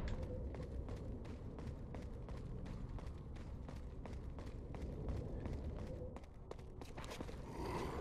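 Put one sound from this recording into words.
Footsteps run quickly on stone steps.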